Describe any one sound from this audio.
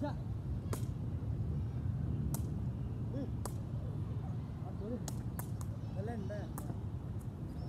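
A ball is hit with sharp slaps.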